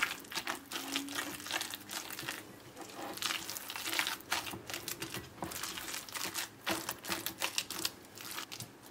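A silicone spatula stirs a moist eggplant mixture in a glass bowl.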